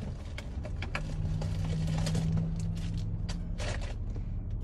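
A truck engine rumbles loudly nearby.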